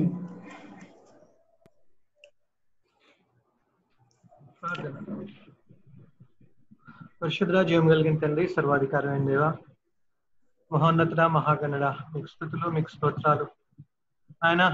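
A man speaks steadily through an online call, pausing between phrases.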